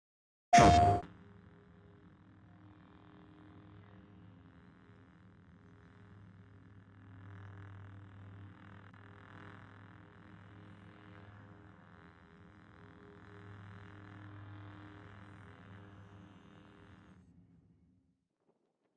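Soft, low menu music plays steadily and fades out.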